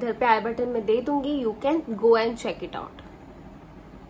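A young woman talks to the listener close to the microphone, with animation.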